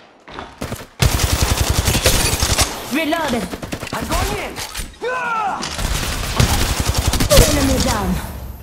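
An automatic gun fires rapid bursts.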